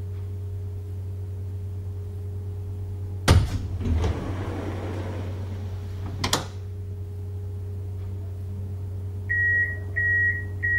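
A tram's electric equipment hums low and steadily.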